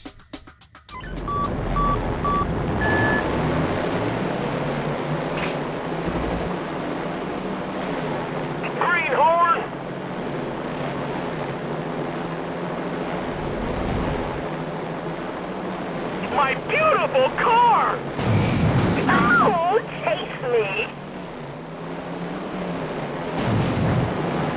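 Small engines whir steadily as toy cars race.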